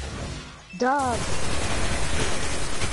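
A gun fires rapidly with crackling electric bursts.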